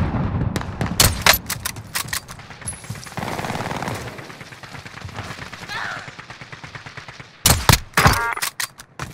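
Rifle shots crack sharply with a short echo.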